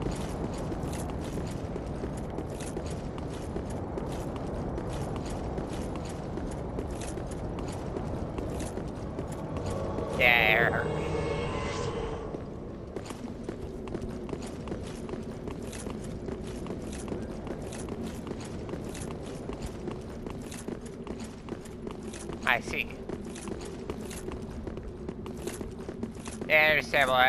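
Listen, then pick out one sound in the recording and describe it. Armoured footsteps run quickly on stone.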